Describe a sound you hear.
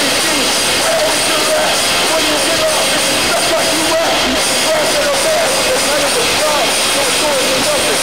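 A young man shouts and screams into a microphone over loud music.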